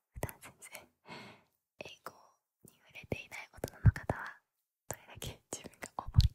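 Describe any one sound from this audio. A young woman giggles quietly close to a microphone.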